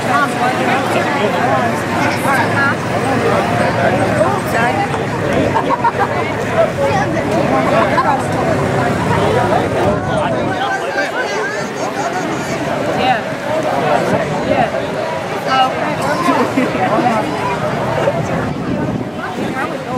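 A crowd of men and women chatter loudly all around, close by.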